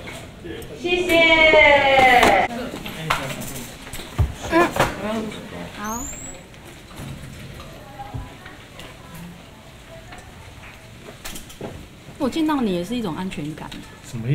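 A young woman speaks calmly into microphones, close by.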